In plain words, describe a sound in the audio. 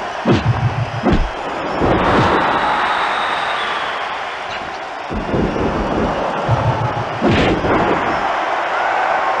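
Heavy bodies thud onto a wrestling ring mat.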